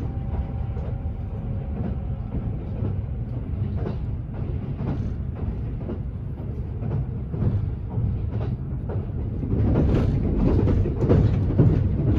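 Train wheels clack over rail joints, growing louder and faster.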